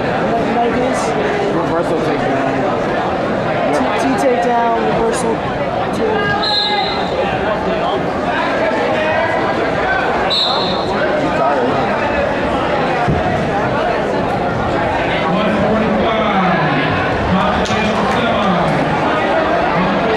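A crowd chatters loudly in a large echoing gym.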